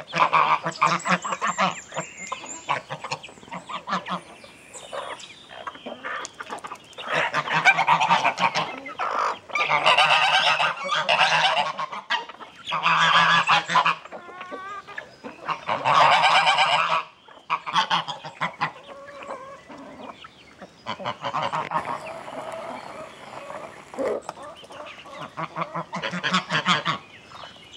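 Hens cluck softly and steadily.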